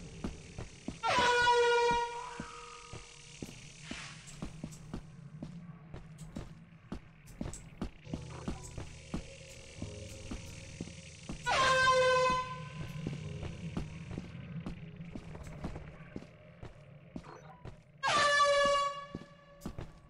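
An air horn blares in short, loud blasts.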